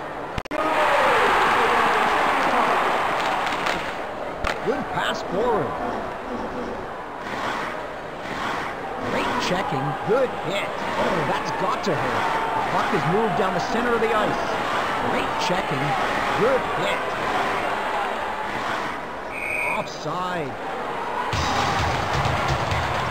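A crowd roars loudly.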